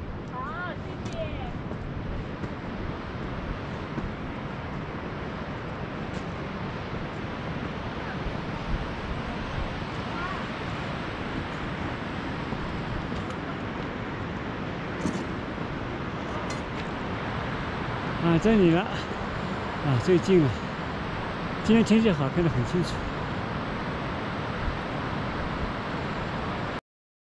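A river rushes steadily in the distance.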